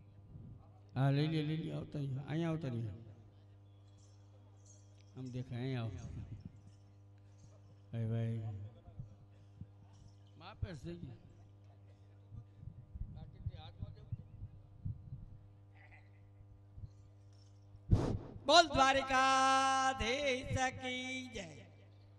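A man speaks loudly through a loudspeaker in a large echoing hall.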